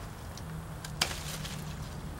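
A plant stem snaps sharply.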